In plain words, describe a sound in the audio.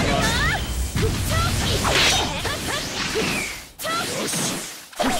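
Energy crackles and bursts with sharp impacts.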